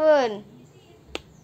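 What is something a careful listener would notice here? A young girl squeals and giggles close by.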